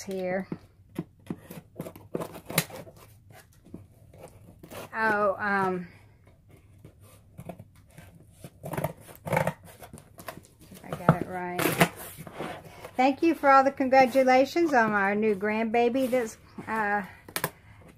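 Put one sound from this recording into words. Scissors snip and slice through packing tape on a cardboard box.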